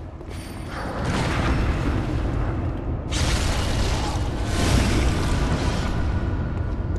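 A blade slashes and strikes flesh in heavy blows.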